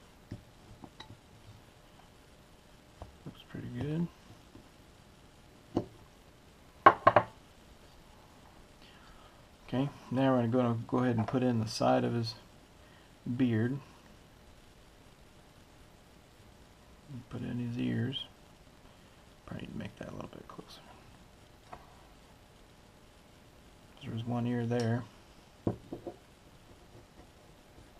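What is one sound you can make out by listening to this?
A small knife shaves and scrapes wood in short strokes.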